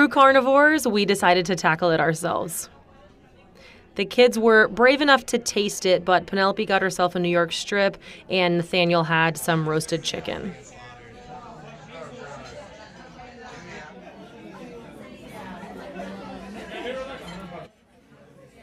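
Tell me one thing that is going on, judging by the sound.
Diners chatter in the background of a room.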